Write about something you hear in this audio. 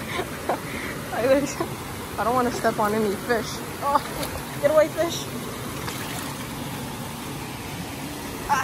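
Shallow water trickles and splashes over stones.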